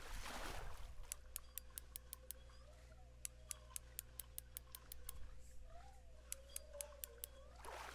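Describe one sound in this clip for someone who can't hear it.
A fishing reel clicks rapidly as its line is wound in.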